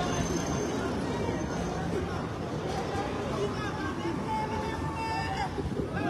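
Traffic rumbles steadily on a street outdoors.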